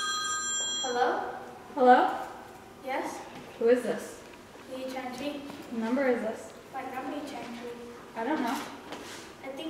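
A young woman talks casually into a phone nearby.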